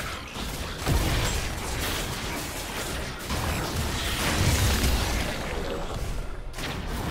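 Game spell effects and hits crackle and boom in a battle.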